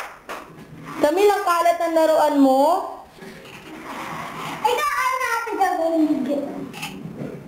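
A young child sings and shouts loudly nearby.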